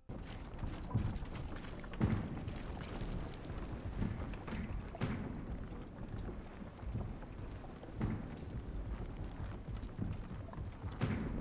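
Heavy footsteps thud on wooden boards at a steady walking pace.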